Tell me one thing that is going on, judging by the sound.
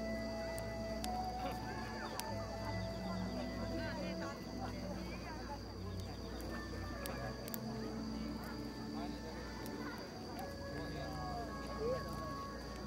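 An acoustic guitar strums.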